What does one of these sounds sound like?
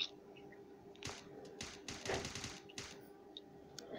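Submachine gun fire cracks in a video game.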